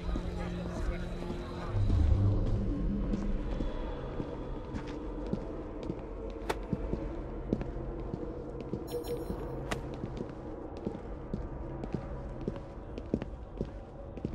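Footsteps tap on a hard floor at a slow walk.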